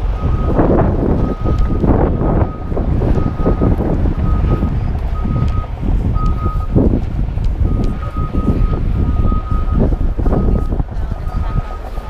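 A crowd of people talks at a distance.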